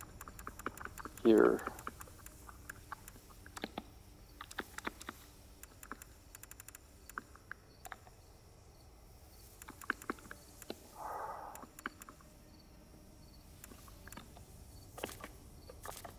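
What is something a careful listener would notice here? Soft menu clicks tick as a list is scrolled.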